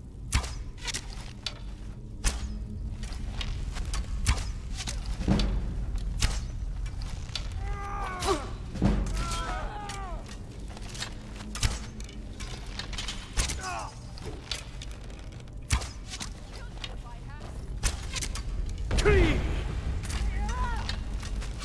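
A bow is loosed with a sharp twang.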